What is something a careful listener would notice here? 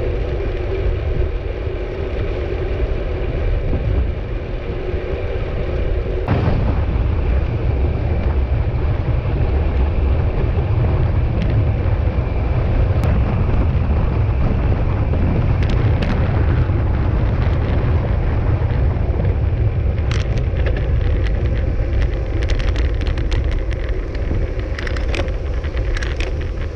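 Wind rushes loudly past a bicycle rider.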